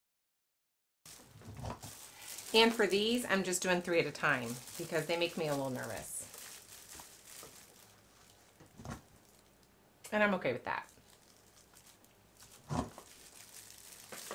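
Plastic film crinkles and rustles as hands handle it.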